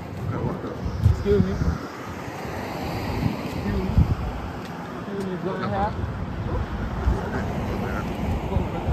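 Young people talk casually nearby.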